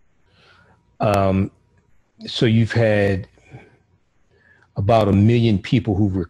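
A middle-aged man speaks with animation close to a microphone, pausing between phrases.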